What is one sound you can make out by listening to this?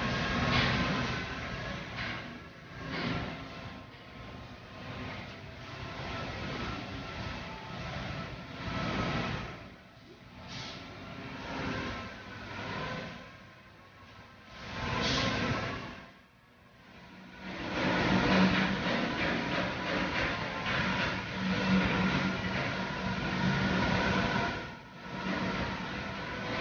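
Machinery hums steadily in a large echoing hall.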